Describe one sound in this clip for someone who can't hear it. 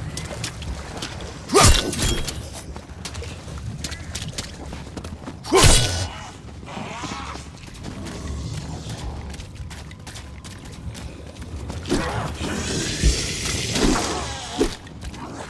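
Zombies snarl and groan nearby.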